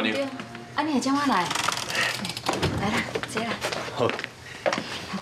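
A young woman speaks in a close, questioning voice.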